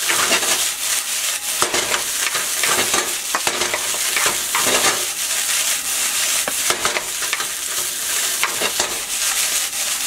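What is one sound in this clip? Rice sizzles loudly in a hot pan.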